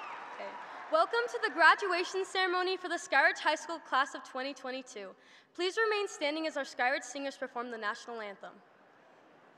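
A young woman speaks calmly into a microphone, heard over loudspeakers in a large hall.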